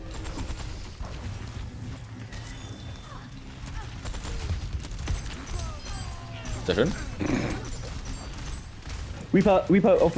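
Futuristic guns fire in rapid bursts.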